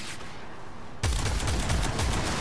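A green energy weapon blasts loudly.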